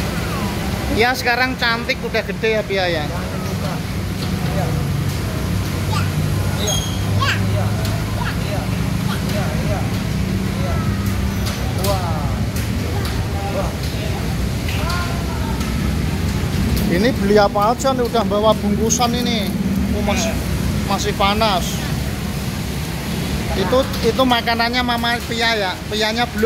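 A young child shouts excitedly nearby.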